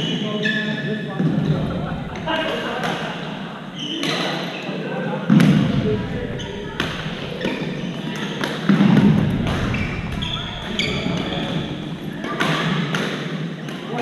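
Sneakers squeak on a hard gym floor.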